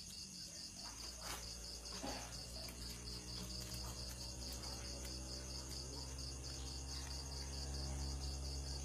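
A man plays a harmonica with steady held notes.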